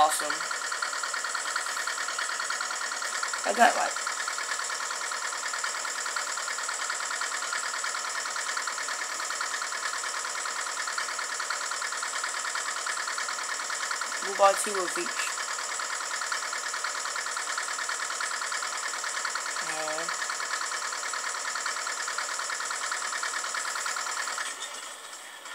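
Game music plays steadily from small laptop speakers.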